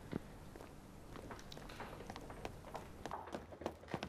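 Footsteps tap on stairs.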